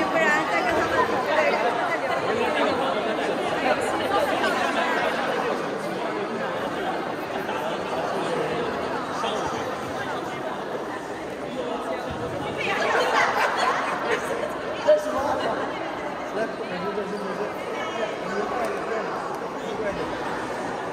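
A crowd of men and women chatter and laugh in a large echoing hall.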